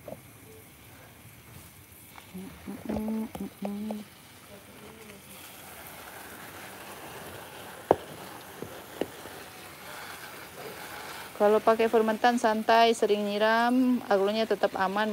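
A spray bottle hisses softly as it mists water.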